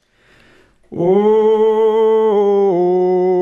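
Men sing a sustained note together into microphones.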